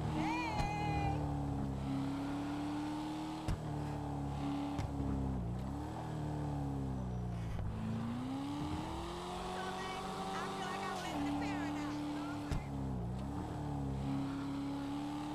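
A car engine roars steadily, rising and falling in pitch as the car speeds up and shifts gears.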